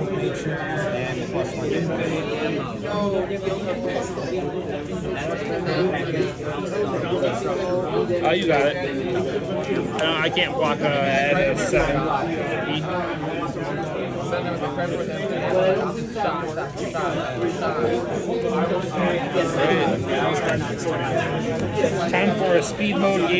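Playing cards slide and tap softly onto a table.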